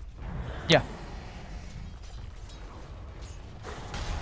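Fighting sound effects clash and whoosh.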